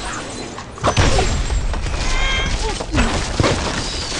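Wooden and stone blocks crash and tumble down.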